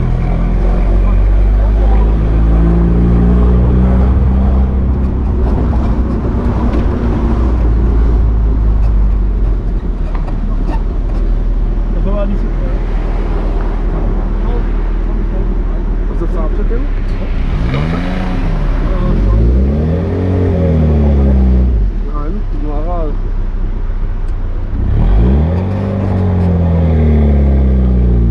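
A car engine rumbles loudly and steadily while driving.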